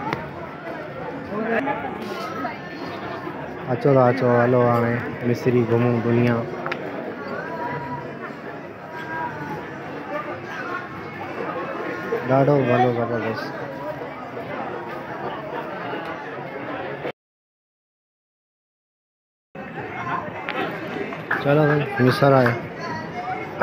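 Many people chatter and call out nearby.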